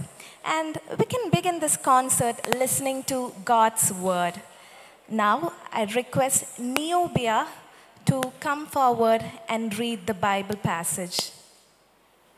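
A woman speaks with animation through a microphone in a large echoing hall.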